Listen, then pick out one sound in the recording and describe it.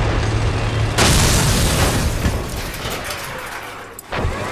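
A vehicle explodes with a loud blast.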